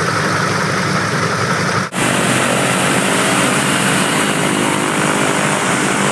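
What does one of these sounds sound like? Propeller engines of a parked plane roar loudly and steadily.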